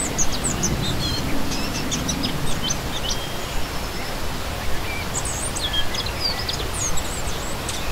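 A stream splashes and gurgles steadily over rocks.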